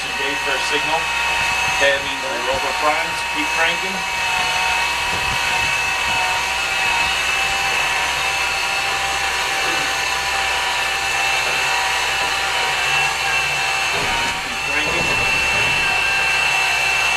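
A propeller engine runs loudly and steadily up close.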